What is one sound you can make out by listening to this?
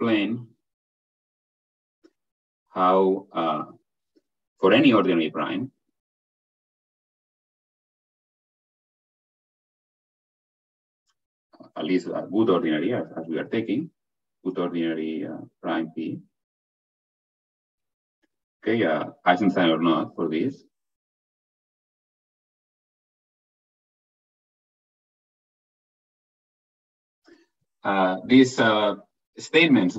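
A man lectures calmly in short phrases with long pauses, heard through an online call.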